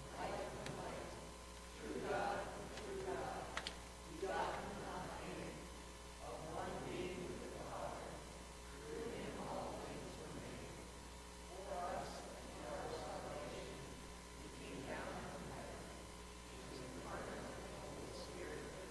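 A group of adults recites together in slow unison in an echoing hall.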